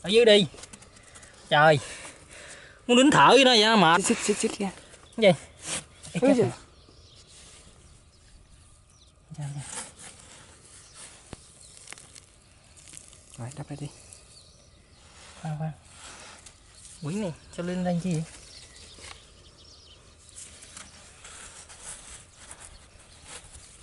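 A hollow pipe scrapes and bumps against dry soil.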